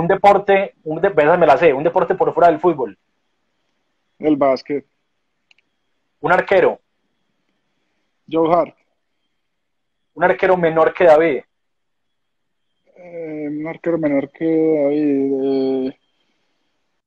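A man laughs and talks over an online call.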